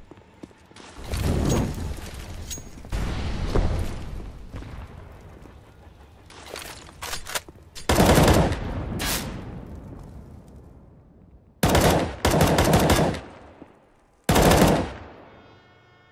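Rifle gunfire rattles in loud bursts, echoing afterwards.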